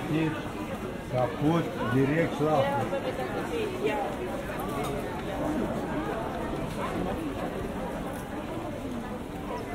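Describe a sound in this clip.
A crowd of people chatters nearby in an open pedestrian street.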